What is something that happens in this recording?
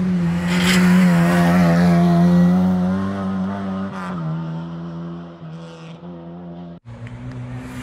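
A rally car engine roars loudly close by, then fades as the car speeds away.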